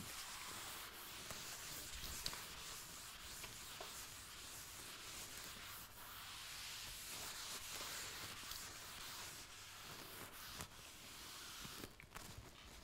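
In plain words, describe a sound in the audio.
An eraser rubs across a chalkboard with a steady swishing.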